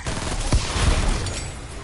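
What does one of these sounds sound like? Gunfire cracks in a video game.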